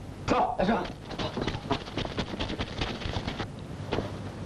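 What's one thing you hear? Footsteps shuffle as a crowd of men moves off.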